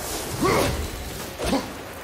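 A flock of crows flaps away in a burst of wings.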